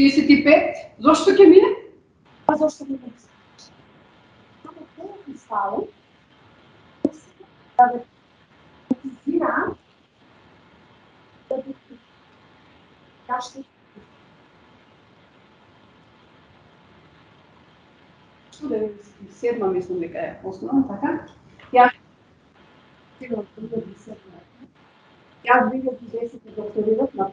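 A woman speaks calmly, in pauses, through a microphone over an online call.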